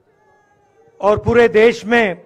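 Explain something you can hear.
A man speaks loudly into a microphone, heard through loudspeakers outdoors.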